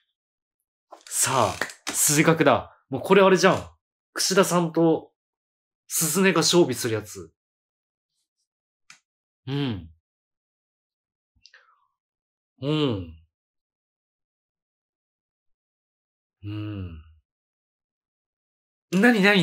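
A man talks with animation into a microphone, close by, in short bursts with pauses.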